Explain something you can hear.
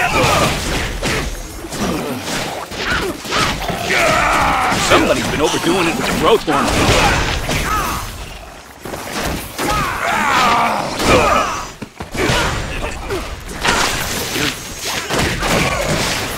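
Blades slash and strike repeatedly.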